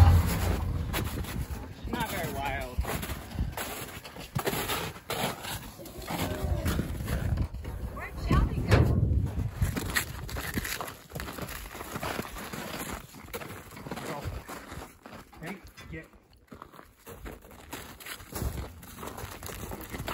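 Footsteps crunch on packed snow.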